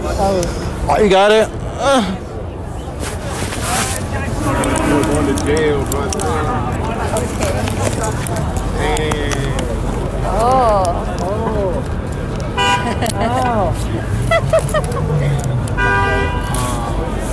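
A woman talks playfully close by.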